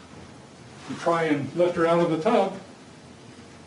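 A man speaks briefly and clearly into a microphone in a quiet room.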